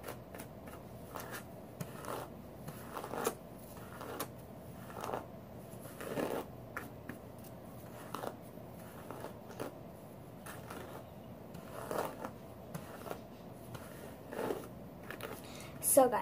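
A hairbrush swishes through long hair in repeated strokes.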